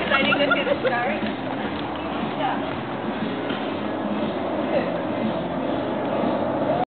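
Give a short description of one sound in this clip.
Several men and women chatter outdoors nearby.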